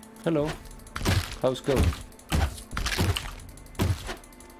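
Heavy blows thud in a scuffle.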